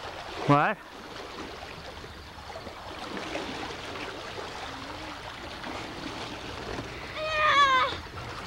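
A young boy shouts loudly close by.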